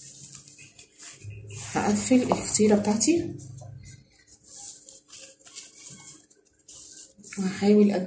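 Pastry sheets rustle as they are folded over.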